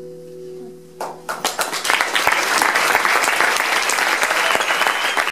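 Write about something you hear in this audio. A live band plays music loudly in a room.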